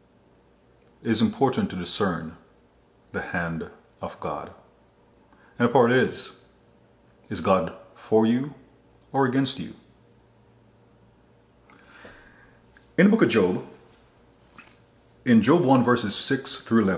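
A man speaks slowly and emphatically into a close microphone, with long pauses.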